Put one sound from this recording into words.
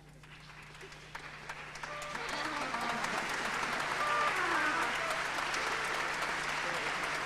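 An orchestra plays in a large echoing hall, swelling louder.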